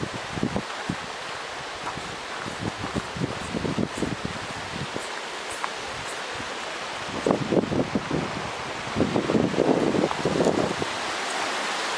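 Footsteps crunch on grass and gravel.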